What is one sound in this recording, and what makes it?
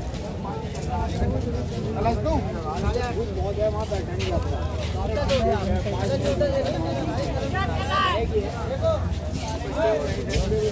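A crowd of men, women and children chatter all around outdoors.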